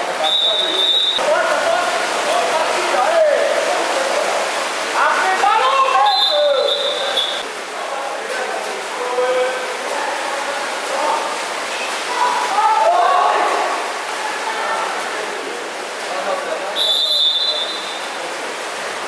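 A referee blows sharp whistle blasts in an echoing hall.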